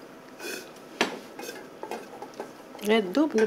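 A spoon clinks and scrapes inside a metal pot.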